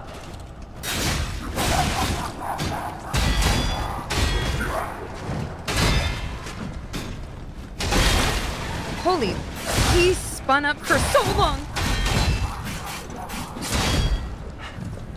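Swords clash and strike with sharp metallic hits.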